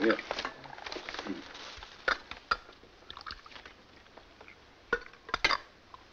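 Coffee pours into a cup.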